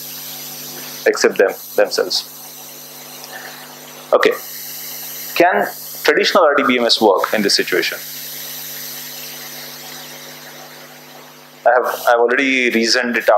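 A man lectures through a microphone, speaking calmly in short phrases.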